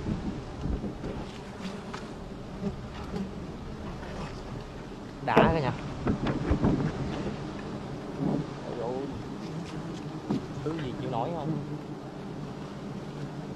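Bees buzz close by.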